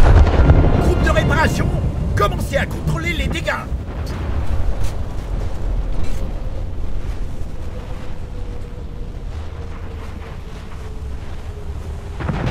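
Anti-aircraft guns rattle in rapid bursts.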